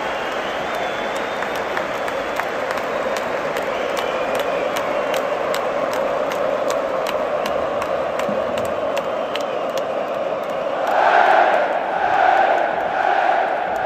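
A large stadium crowd roars and cheers steadily outdoors.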